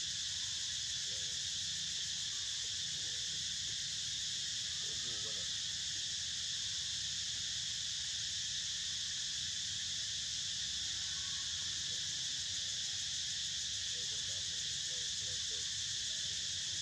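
A baby monkey squeaks softly now and then.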